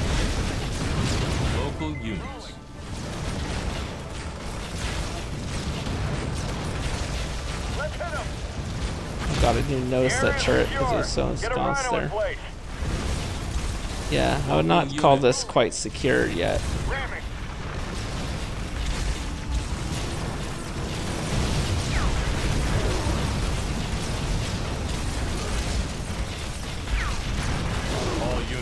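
Laser guns fire and explosions boom in a battle.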